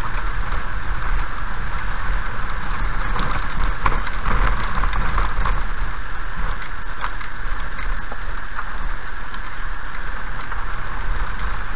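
A car engine rumbles low and steady while driving slowly.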